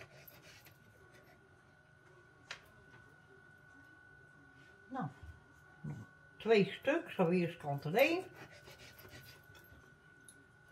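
A knife cuts a tomato on a wooden board.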